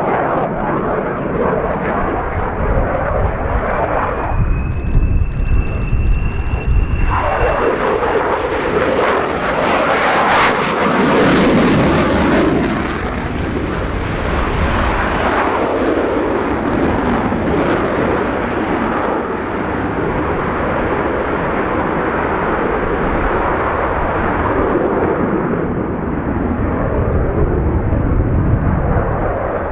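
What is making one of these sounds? A twin-engine fighter jet roars overhead on afterburner, with its sound rising and falling as it turns.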